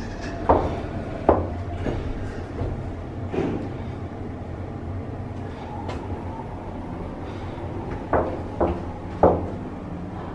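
Heels click on a hard floor in a small room.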